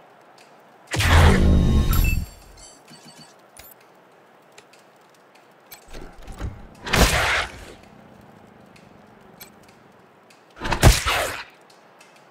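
Gunfire bursts in short volleys.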